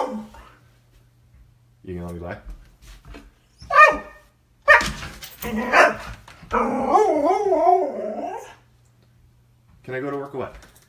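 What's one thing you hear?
A dog howls and yowls in short bursts close by.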